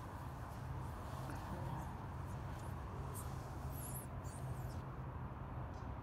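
A cloth wipes across a glass surface.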